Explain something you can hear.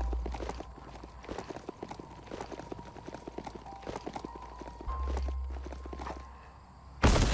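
Footsteps patter quickly on grass and ground.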